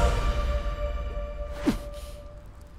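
A boy groans in strain, close by.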